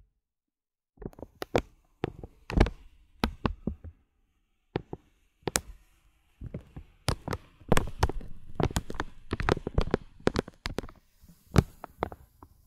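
A brush swishes softly over beads.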